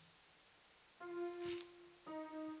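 An electric keyboard plays sustained notes.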